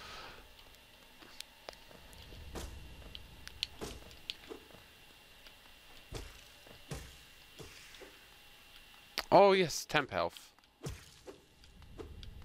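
Light footsteps patter on stone.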